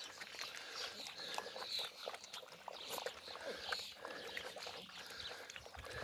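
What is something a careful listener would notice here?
Puppies lap and chew food.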